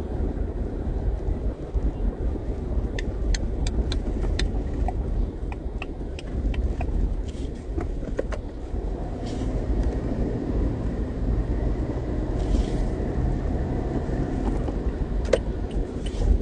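A car engine rumbles low and steady from inside the car.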